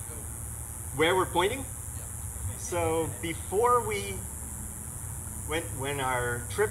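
A young man speaks hesitantly through a microphone over loudspeakers.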